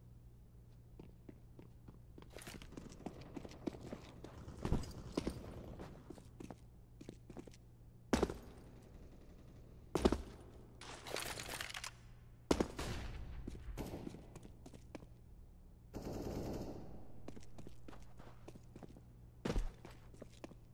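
Footsteps patter quickly on hard stone in a video game.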